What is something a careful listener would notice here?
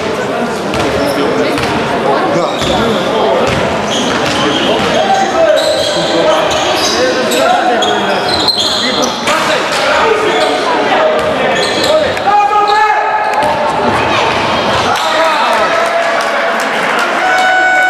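A basketball bounces on the hard floor.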